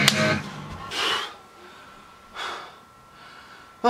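Long hair swishes as a young man whips his head around.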